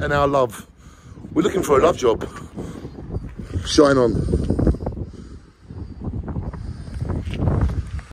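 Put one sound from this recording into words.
A man talks with animation close to a microphone, outdoors.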